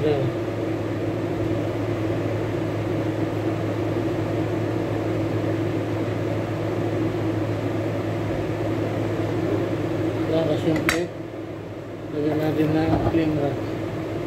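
A knife slices through soft food on a cutting board.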